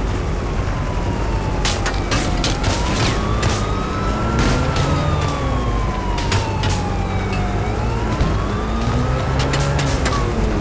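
Car tyres screech and skid on pavement.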